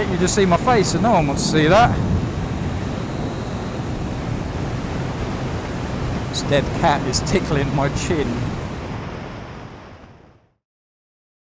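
Wind rushes past loudly.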